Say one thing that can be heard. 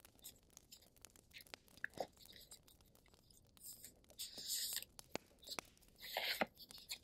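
Paper cards rustle and slide as they are handled close by.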